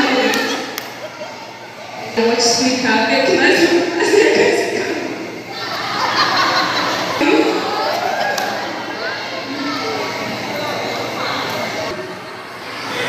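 A woman speaks with animation into a microphone in an echoing hall.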